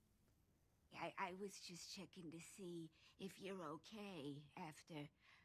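A woman speaks through a loudspeaker.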